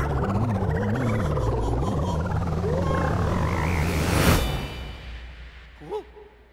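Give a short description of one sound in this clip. A loud rushing whoosh swirls on, then suddenly drops away and fades.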